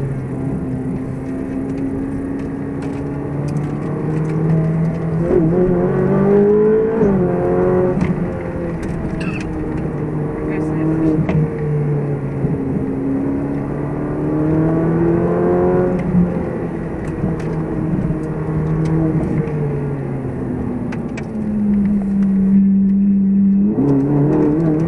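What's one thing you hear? A car engine drones close by, revving up and dropping as the gears change.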